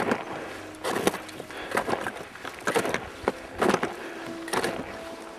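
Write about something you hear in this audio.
Boots crunch on snow as a climber walks close by.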